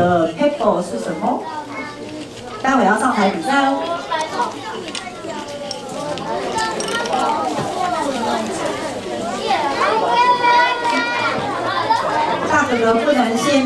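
Children and women talk and chatter nearby.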